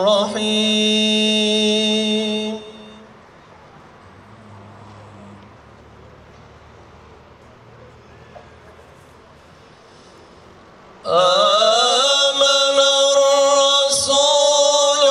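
A young man chants in long, held melodic phrases through a microphone.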